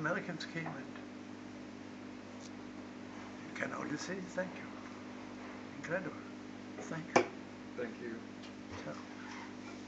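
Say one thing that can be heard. An elderly man talks close by in a calm, low voice.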